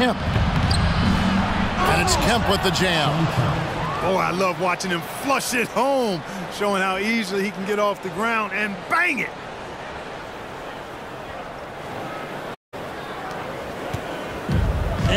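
A large arena crowd murmurs and cheers.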